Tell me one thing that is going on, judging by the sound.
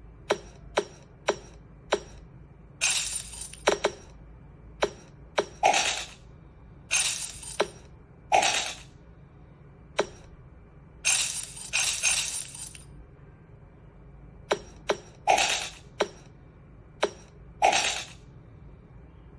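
Short pops and bursts of clinking coins sound from a tablet game's small speaker.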